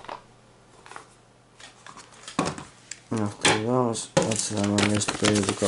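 Plastic packaging rustles in handling.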